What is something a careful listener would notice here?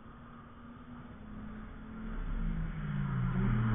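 A car engine roars as it approaches, growing louder.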